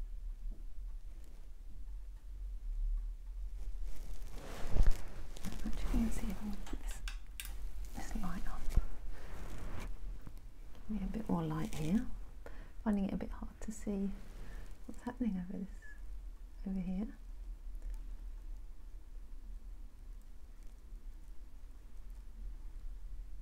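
A paintbrush brushes softly across canvas.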